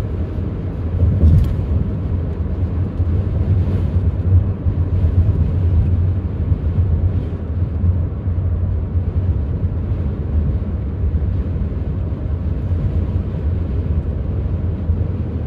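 A car engine hums steadily from inside the car while driving.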